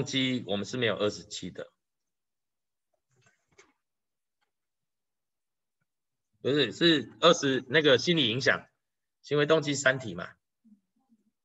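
A man speaks calmly through an online call microphone, in short bursts with pauses.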